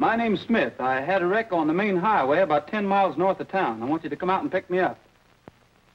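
A man talks into a telephone.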